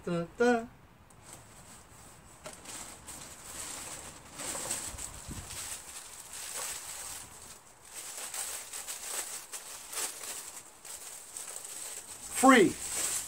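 Plastic wrapping rustles and crinkles.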